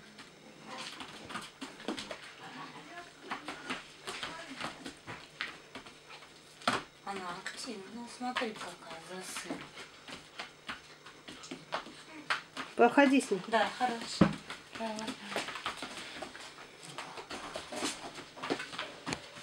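A puppy's claws click and patter on a hard floor.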